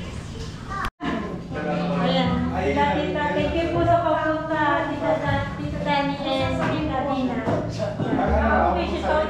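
A woman talks cheerfully close by.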